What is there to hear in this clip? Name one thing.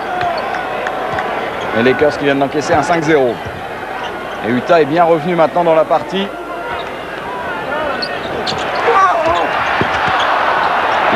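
A crowd murmurs in a large echoing arena, then cheers louder.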